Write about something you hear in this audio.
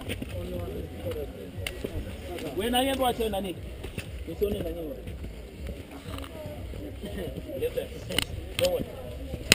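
Footsteps squelch on a muddy path.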